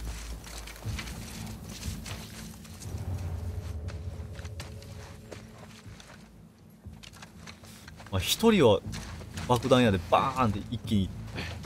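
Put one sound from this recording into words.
Tall grass rustles and swishes as someone crawls through it.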